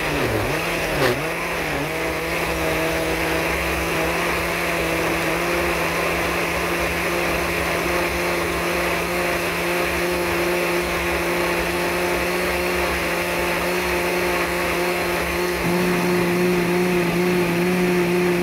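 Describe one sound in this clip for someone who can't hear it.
A blender motor whirs steadily, blending a thick liquid.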